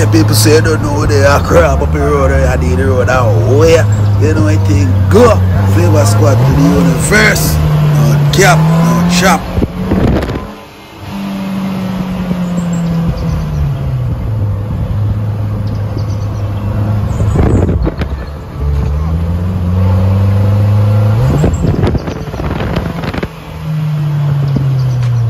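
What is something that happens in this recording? A car engine hums close by, its pitch rising and falling as it speeds up and slows down.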